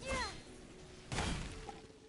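A bright magical burst whooshes loudly.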